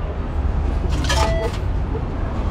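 A card reader beeps.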